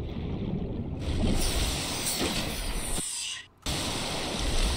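Water splashes and churns as a swimmer breaks the surface.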